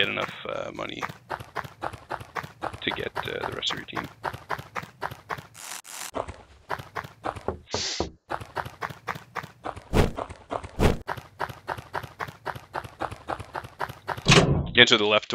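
Quick footsteps tap in a steady rhythm in a video game.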